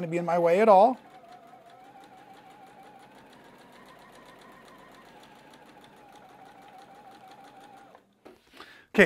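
A sewing machine runs with a steady whir.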